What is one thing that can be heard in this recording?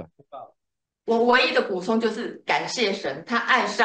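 A woman talks over an online call.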